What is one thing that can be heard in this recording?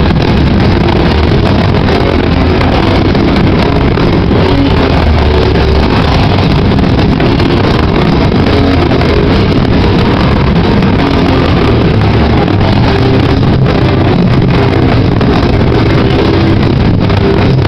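A loud distorted electric guitar plays heavily.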